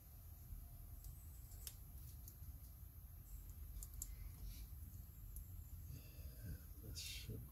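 Small plastic and metal parts click and tap together in someone's hands.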